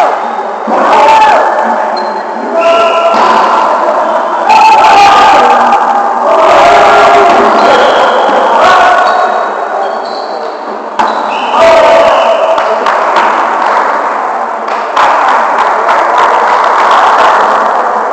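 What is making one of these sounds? Men shout and call out during a volleyball game in a large echoing gym.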